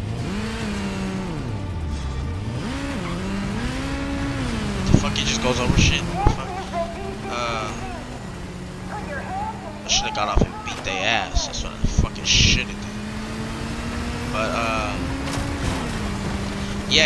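A motorcycle engine roars and revs up and down.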